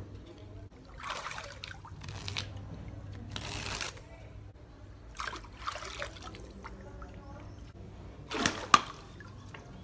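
Water splashes and sloshes as a man wades.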